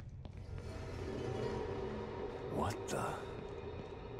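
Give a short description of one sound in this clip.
A man mutters in surprise.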